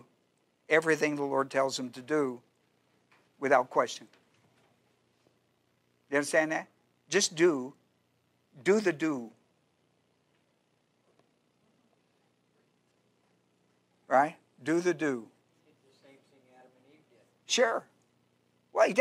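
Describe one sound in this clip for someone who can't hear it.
An older man speaks calmly through a microphone, in bursts with pauses.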